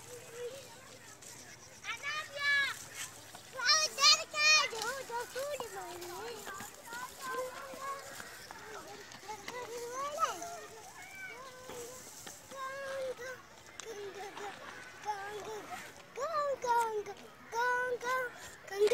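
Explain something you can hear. Shallow water trickles gently over stones.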